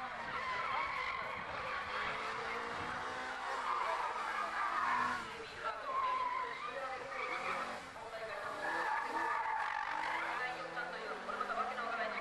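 Tyres squeal through the corners.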